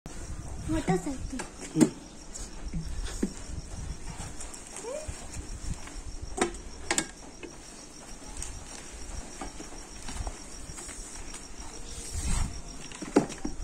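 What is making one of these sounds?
Leafy stems rustle and snap as a man handles them.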